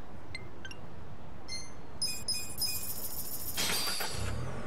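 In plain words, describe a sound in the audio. Short electronic menu blips sound as options are picked.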